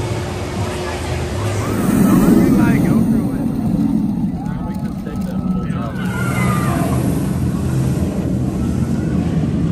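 A roller coaster train roars and rattles along its track.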